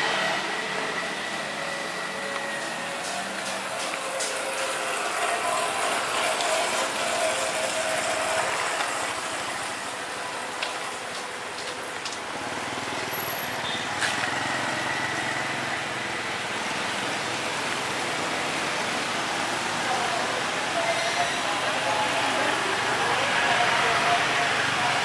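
Motorcycle engines hum steadily close by on a street outdoors.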